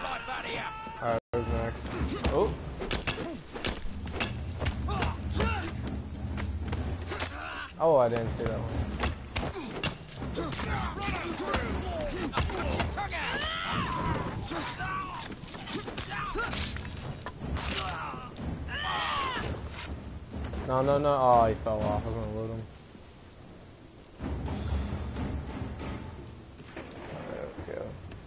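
Fists land with heavy thuds in a brawl.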